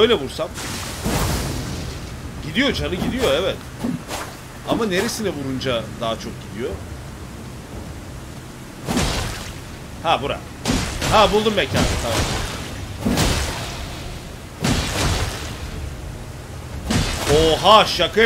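A sword swishes and strikes repeatedly.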